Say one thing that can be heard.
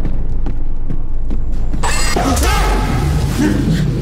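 A man cries out in distress.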